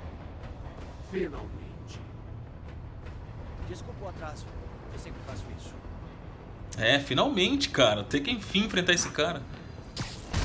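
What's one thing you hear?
A man speaks in a calm, menacing voice.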